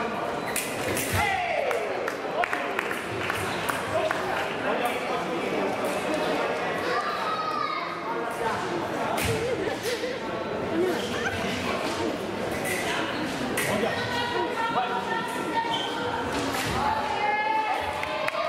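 Shoes stamp and squeak on a fencing strip.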